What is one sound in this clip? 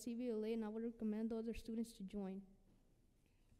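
A young boy speaks calmly into a microphone.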